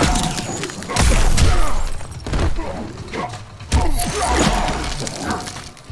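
Heavy punches and kicks land with loud thuds.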